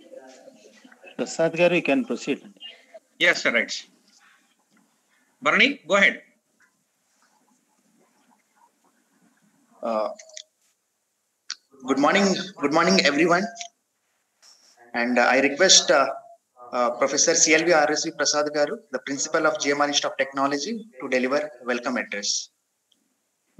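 A man speaks through an online call, in short bursts with pauses.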